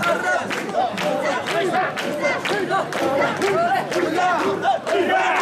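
A crowd of men chant loudly in rhythm close by.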